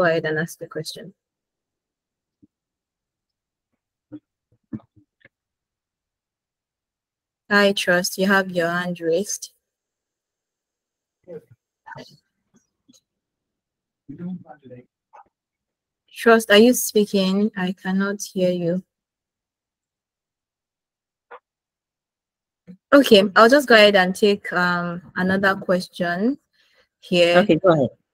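A woman speaks calmly through an online call, in bursts with pauses.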